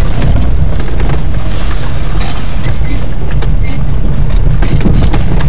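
Wind rumbles loudly and steadily against the microphone.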